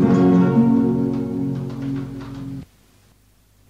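A group of men sing together in harmony, then stop abruptly.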